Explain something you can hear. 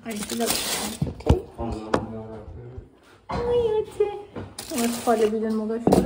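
Foil crinkles and rustles.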